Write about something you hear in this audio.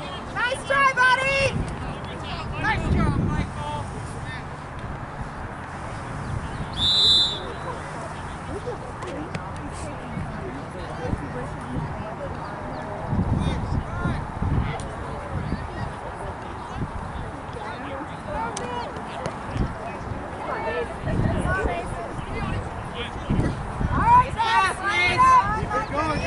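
Young players shout in the distance across an open field.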